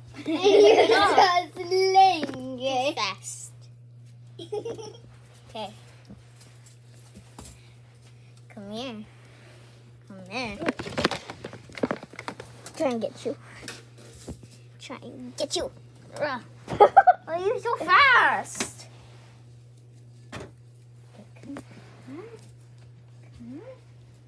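A young child talks excitedly close by.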